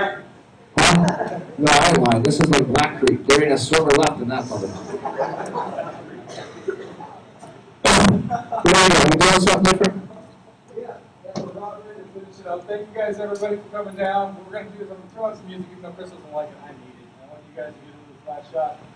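A speaker on stage talks through a loudspeaker in a large echoing hall.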